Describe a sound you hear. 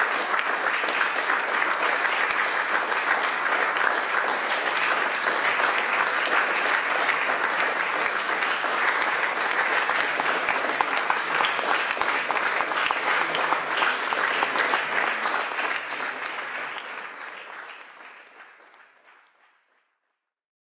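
An audience claps steadily in an echoing hall, then the applause slowly fades away.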